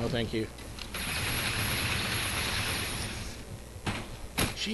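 An energy weapon fires with a steady crackling hiss.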